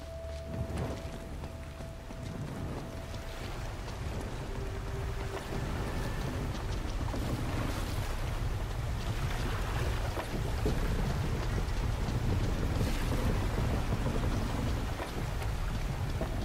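Footsteps run over stone steps.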